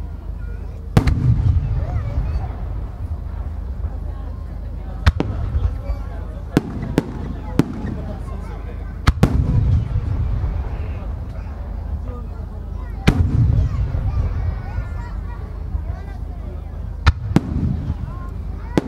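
Large aerial firework shells burst with deep booms that rumble and echo outdoors.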